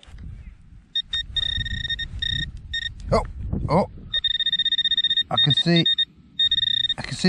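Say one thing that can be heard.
A handheld probe beeps in loud, steady bursts, on and off.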